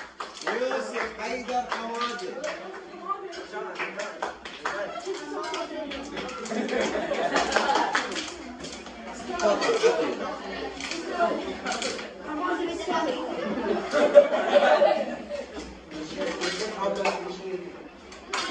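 Many teenage boys talk and chatter at once in a room, close by.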